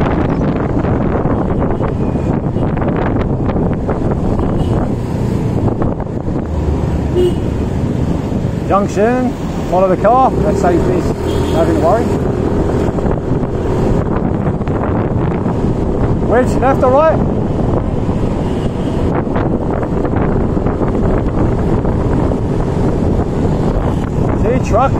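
A scooter engine hums steadily while riding.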